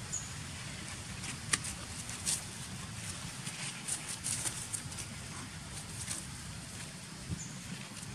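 Small bodies scuffle and rustle on dry ground.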